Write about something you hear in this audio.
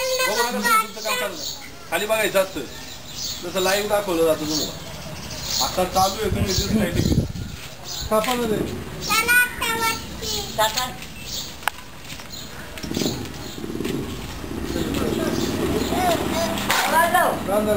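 Several people chatter in the open air.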